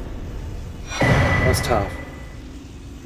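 A bright game chime rings out as an item is picked up.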